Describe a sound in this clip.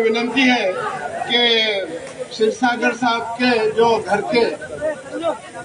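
An elderly man speaks forcefully into a microphone over a loudspeaker.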